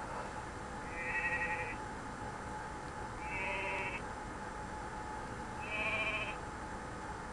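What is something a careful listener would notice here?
A sheep bleats a few times.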